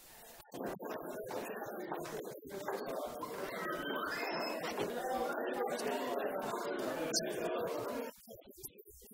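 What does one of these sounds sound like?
A group of people chat quietly indoors.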